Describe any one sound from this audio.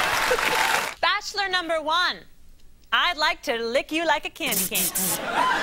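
A woman sings loudly.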